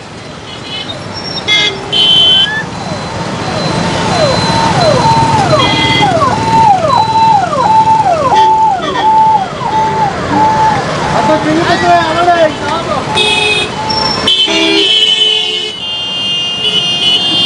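Car and motorbike engines hum as traffic passes.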